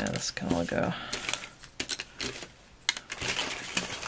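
Paper pieces rustle and slide against each other.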